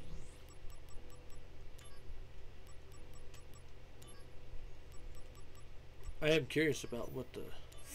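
Soft electronic menu ticks click in quick succession.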